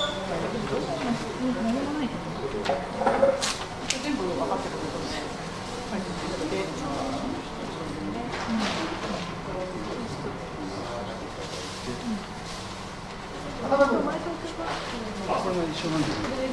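Paper rustles as sheets are handled.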